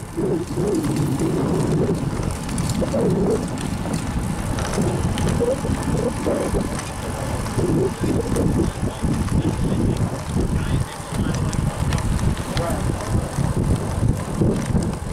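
Wind rumbles loudly against the microphone.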